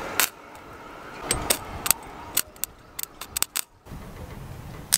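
An arc welder crackles and sputters in short bursts.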